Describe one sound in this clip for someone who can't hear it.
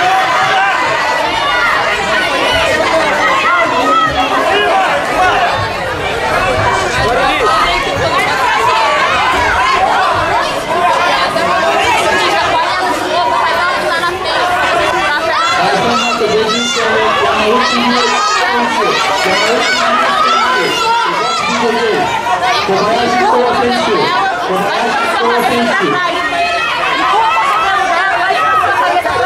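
A crowd of spectators chatters and shouts in a large echoing hall.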